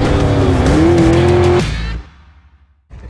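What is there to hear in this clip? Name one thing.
An engine roars as a vehicle splashes through water.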